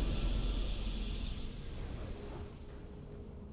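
A bright game fanfare bursts out and fades after a couple of seconds.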